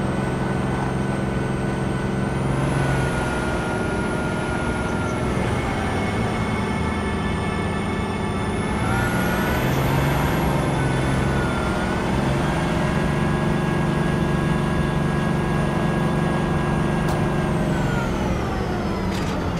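A heavy vehicle's engine hums steadily and rises and falls in pitch as it drives.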